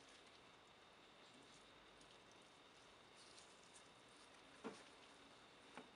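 Paper liner rustles as it is peeled away from a block.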